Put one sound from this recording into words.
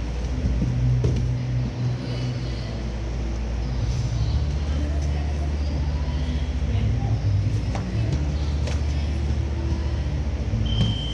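Fists and shins thump against bodies during sparring.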